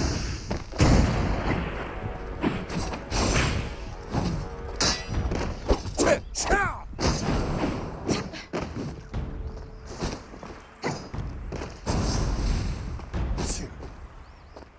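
Sharp impacts crack and boom.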